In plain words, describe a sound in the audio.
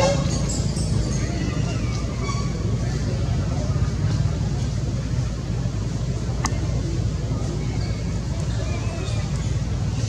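A baby monkey squeaks softly.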